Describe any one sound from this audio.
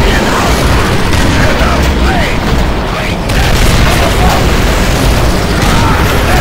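Heavy explosions boom and rumble.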